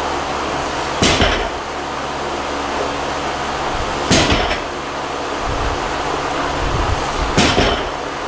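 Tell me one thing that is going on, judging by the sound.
A barbell loaded with bumper plates thuds onto a rubber platform.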